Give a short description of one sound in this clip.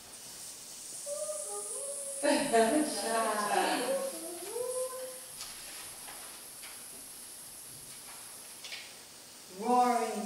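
A woman sings softly to small children in an echoing room.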